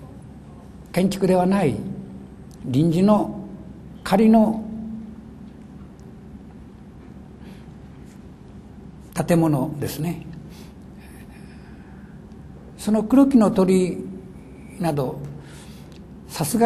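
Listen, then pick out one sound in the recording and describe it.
An elderly man reads aloud slowly into a microphone, with long pauses.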